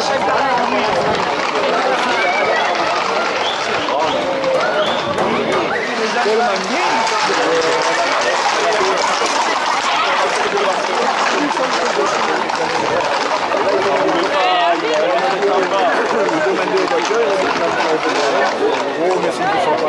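A crowd of men and women shouts and chatters excitedly outdoors.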